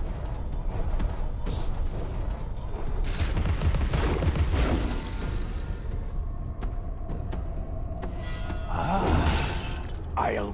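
Fighting sounds clash and whoosh in a video game.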